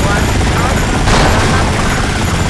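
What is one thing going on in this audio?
A car explodes with a loud boom.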